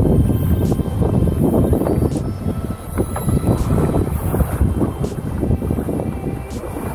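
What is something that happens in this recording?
Strong wind blows and buffets loudly, outdoors on open water.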